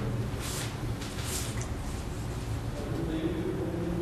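An older woman speaks calmly nearby.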